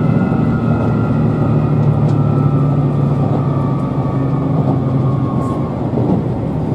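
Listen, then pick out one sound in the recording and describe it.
A train's motor whines and slowly falls in pitch before fading out.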